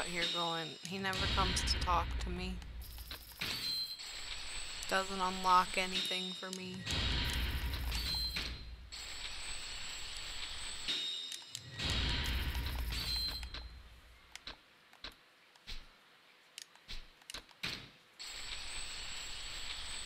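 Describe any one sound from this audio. A video game makes a rushing whoosh with a rattling count.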